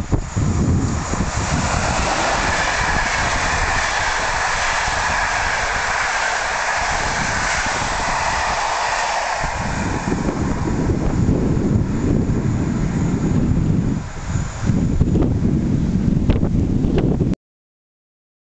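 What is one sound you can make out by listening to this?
A passenger train rushes past close by with loud rumbling and rattling wheels.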